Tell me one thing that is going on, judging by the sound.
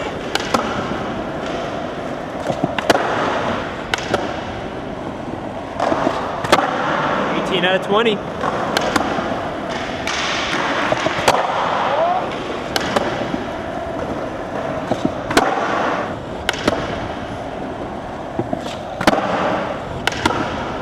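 Skateboard wheels roll and rumble on a smooth concrete floor in a large echoing hall.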